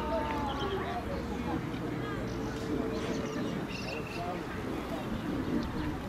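Men and women chat quietly among an outdoor crowd.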